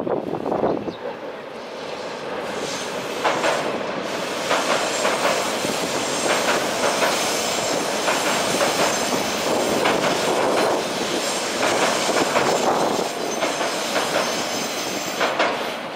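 A train rumbles steadily across a bridge.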